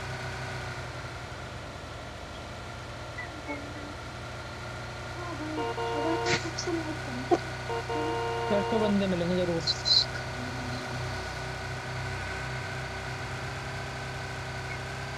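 A car engine hums steadily as a car drives over rough ground.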